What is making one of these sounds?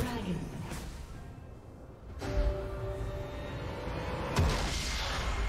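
Video game combat effects clash and boom.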